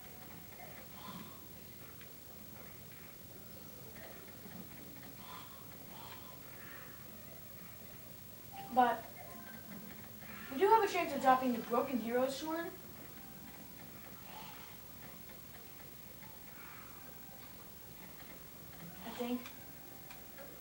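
A television plays sounds through its small speaker.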